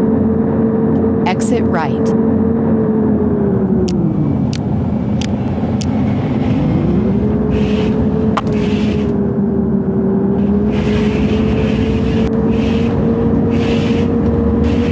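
A bus engine hums steadily, dipping in pitch and rising again.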